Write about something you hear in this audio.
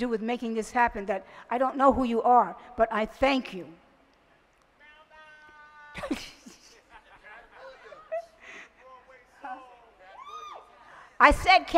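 An elderly woman speaks calmly into a microphone, heard through loudspeakers outdoors.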